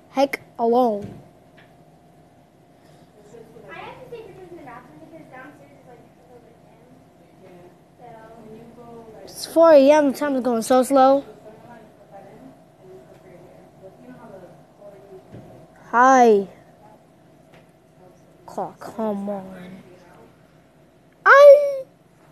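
A desk fan whirs steadily.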